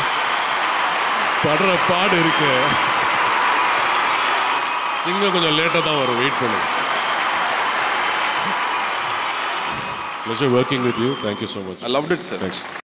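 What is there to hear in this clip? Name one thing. A large crowd cheers and shouts loudly throughout.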